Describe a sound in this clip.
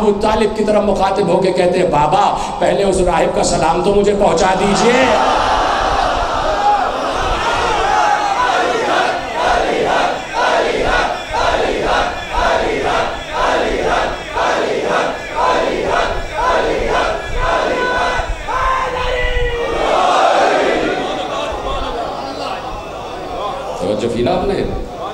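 A large crowd of men chants loudly together in an echoing hall.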